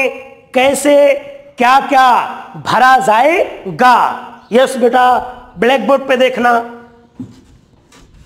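A man speaks loudly and with animation, close to a microphone.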